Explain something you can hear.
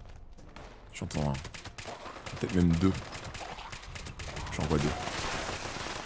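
A man talks into a microphone in bursts.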